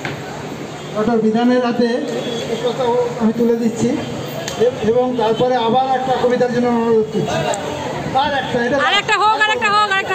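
A man speaks with animation into a microphone, heard loud through a loudspeaker outdoors.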